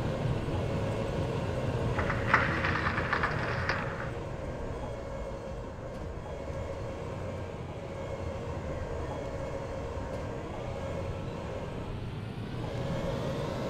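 Tank tracks clatter over rough ground.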